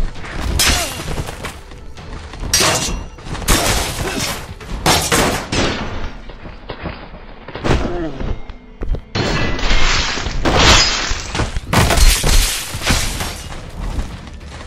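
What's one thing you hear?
A heavy sword swishes through the air.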